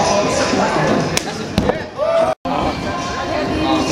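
A body lands with a thud on a padded floor.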